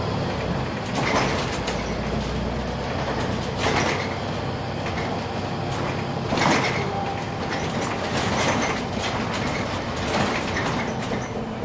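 The bus body rattles and clatters over bumps.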